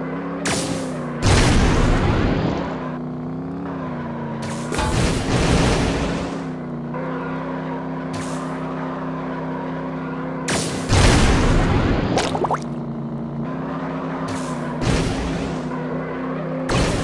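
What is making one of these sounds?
Boosts whoosh in short bursts.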